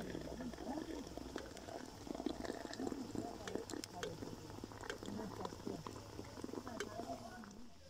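Water bubbles and boils in a kettle over a fire.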